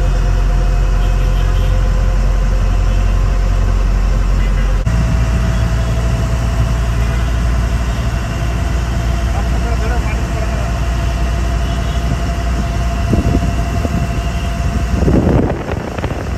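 A boat engine hums steadily and low.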